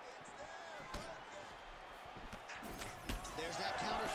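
A punch lands with a dull thud.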